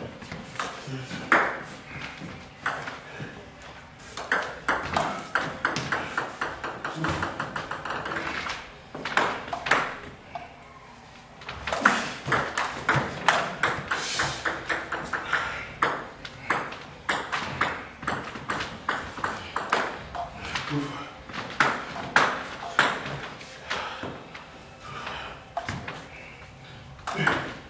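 A ping pong ball clicks back and forth on paddles and a table in quick rallies.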